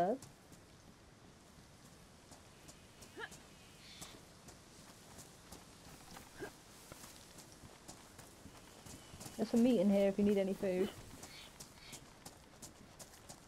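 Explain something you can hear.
Footsteps swish through grass.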